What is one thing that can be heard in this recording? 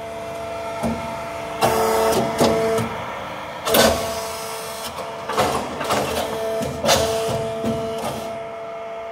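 Machinery clanks and knocks sharply.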